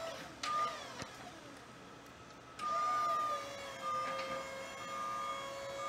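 An electric lift motor hums as a platform rises.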